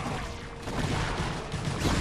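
Game laser blasts zap and crackle in a battle.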